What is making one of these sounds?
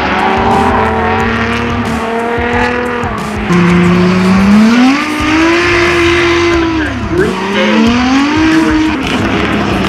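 Car engines roar and rev loudly, rising and falling in pitch.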